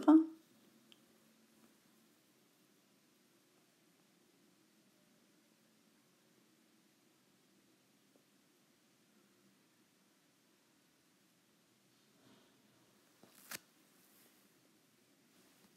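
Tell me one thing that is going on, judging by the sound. Fabric rustles softly as hands smooth and fold it.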